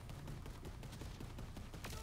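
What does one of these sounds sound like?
A gun's electric blast crackles and hums.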